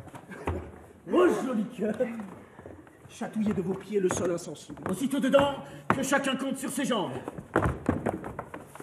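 Several men laugh and shout boisterously in an echoing room.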